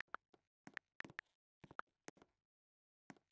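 Soft keyboard taps click in quick succession.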